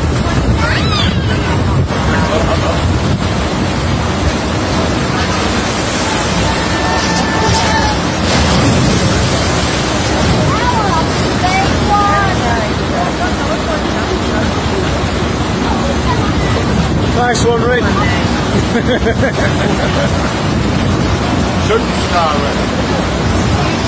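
Water rushes and splashes loudly and steadily.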